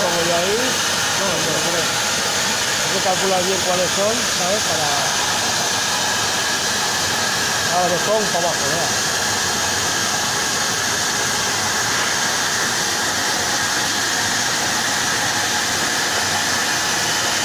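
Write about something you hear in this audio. A plasma torch hisses steadily as it cuts through steel.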